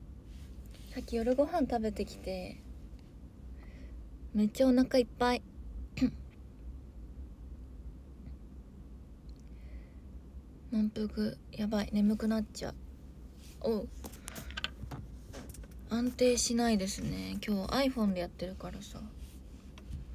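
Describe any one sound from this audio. A young woman talks casually and close by, in short bursts with pauses.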